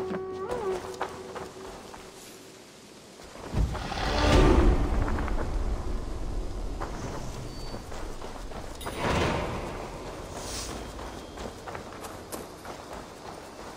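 A soft wind blows through trees outdoors.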